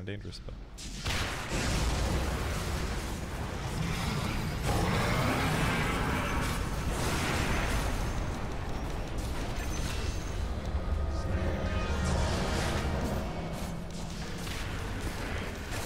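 Game spell blasts crackle and boom in a busy battle.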